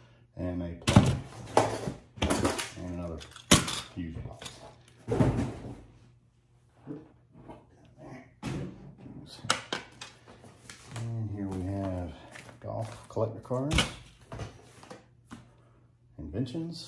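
Plastic and cardboard items rustle and clatter as they are handled.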